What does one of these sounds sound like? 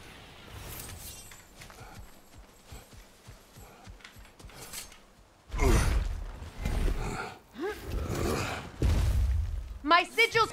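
Heavy footsteps crunch through grass and leaves.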